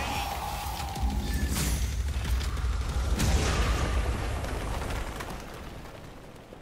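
A heavy rock bursts and shatters with a loud, rumbling crash.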